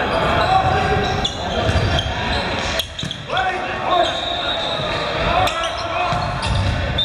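A crowd murmurs steadily in the background.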